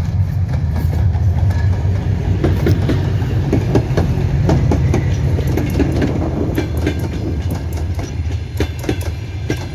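A diesel locomotive rumbles loudly as it passes close by.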